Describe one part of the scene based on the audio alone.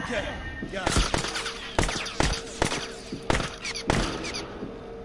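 Gunshots crack out in a quick series of loud bangs.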